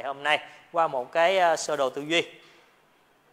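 A young man speaks clearly into a microphone.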